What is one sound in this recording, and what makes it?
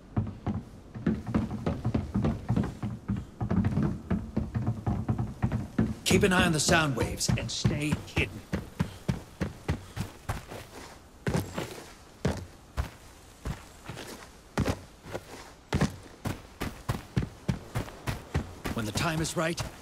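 Footsteps tread over hard ground.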